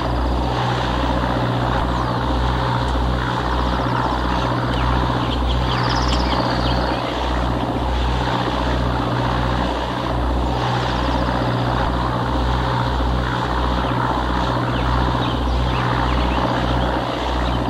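A boat engine chugs steadily.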